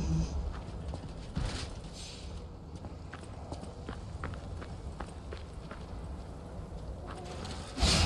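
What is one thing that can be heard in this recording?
Footsteps crunch over gravel.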